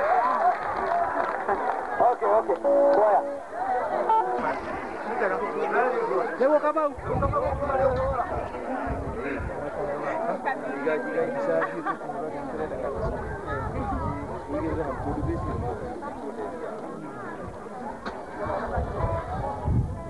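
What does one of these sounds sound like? A crowd of women sings together outdoors.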